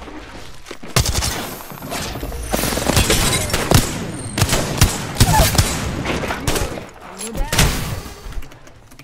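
Gunfire bursts out in rapid, loud shots.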